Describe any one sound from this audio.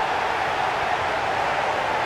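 A young man shouts.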